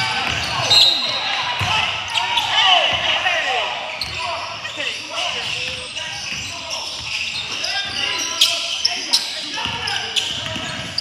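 Sneakers squeak sharply on the court.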